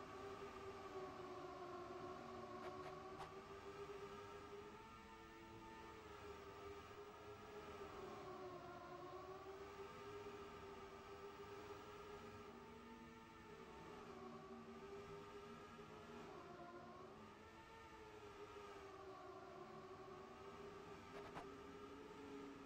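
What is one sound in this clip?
Racing car engines whine steadily, rising and falling in pitch as the cars speed around the track.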